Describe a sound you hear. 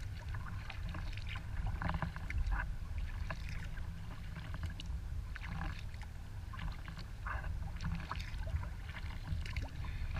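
Water splashes and drips from a paddle as a kayak glides.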